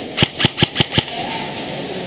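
A paintball marker fires a quick burst of sharp shots close by.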